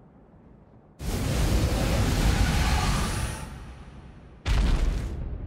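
A loud blast roars and rushes, then slowly dies away.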